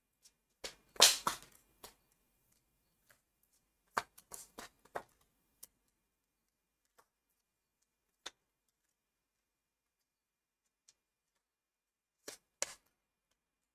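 Playing cards are laid down with soft taps and slides.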